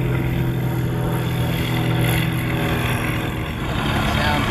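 A model airplane engine drones steadily overhead.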